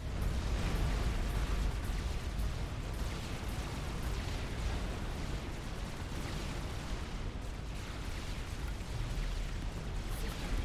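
Gunfire and laser shots crackle repeatedly in quick bursts.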